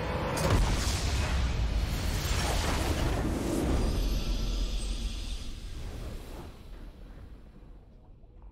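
A deep explosion booms and rumbles, then slowly fades.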